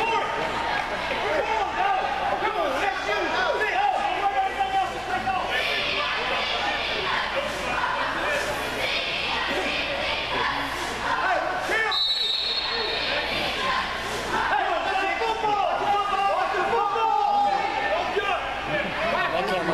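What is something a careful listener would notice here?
A crowd of spectators chatters in a large echoing indoor hall.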